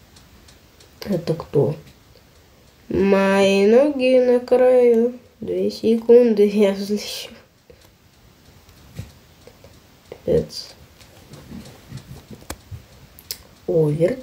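A young child talks and sings with animation, close to a microphone.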